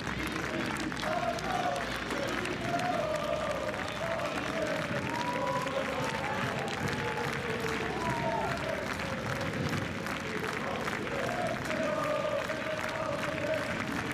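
Players clap their hands.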